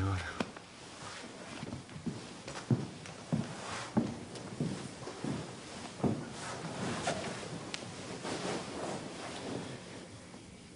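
Bodies thump and scuffle against a couch.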